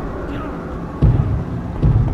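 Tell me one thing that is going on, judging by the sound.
A boxer falls heavily onto the ring floor with a dull thud.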